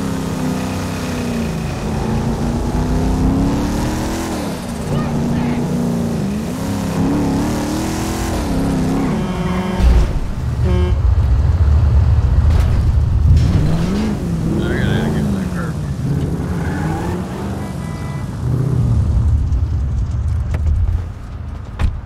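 A car engine revs and roars as it drives, rising and falling in pitch.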